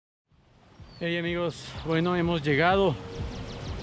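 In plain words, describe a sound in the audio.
A middle-aged man speaks close by, outdoors.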